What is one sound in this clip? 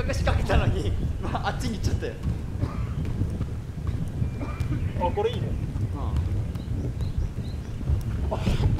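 Children shout and laugh nearby outdoors.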